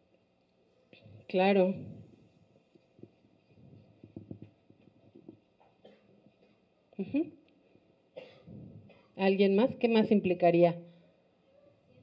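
A woman speaks into a microphone in short bursts.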